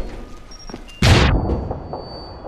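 A heavy crate thuds as it is set down.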